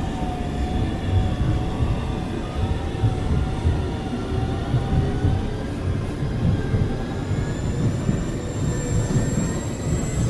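A train's electric motor whines with a gently shifting pitch.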